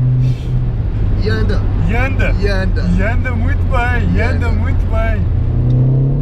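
Young men laugh loudly.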